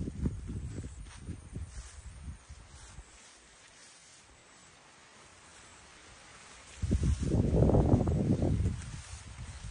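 Wind gusts outdoors and rustles tall leafy plants.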